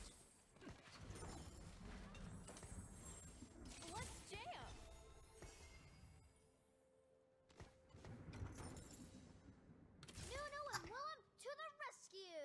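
Video game battle effects whoosh and clash.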